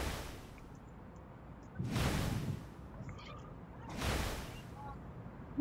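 A swirling whirlwind whooshes in repeated bursts.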